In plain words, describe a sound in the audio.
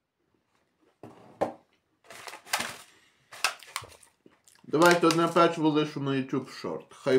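A plastic tray crinkles in a man's hands.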